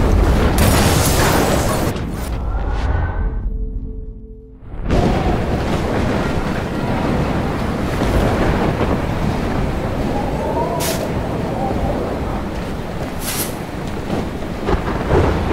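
Flames crackle and roar nearby.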